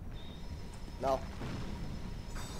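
A magic spell rings out with a short, bright chime.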